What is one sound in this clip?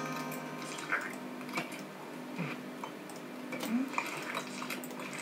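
Light game music and sound effects play from a small speaker.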